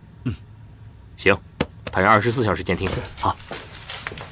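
A second man answers in a low, firm voice, close by.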